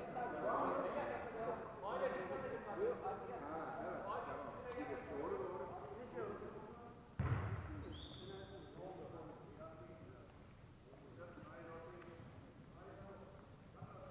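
Shoes squeak on a wooden floor.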